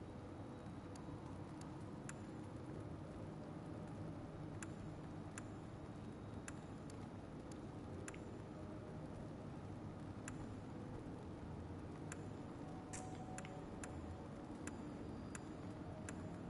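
Menu selections tick with short, soft clicks.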